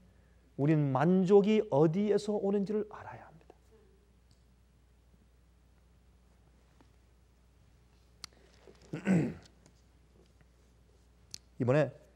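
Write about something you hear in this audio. An elderly man speaks with animation into a microphone, with long pauses.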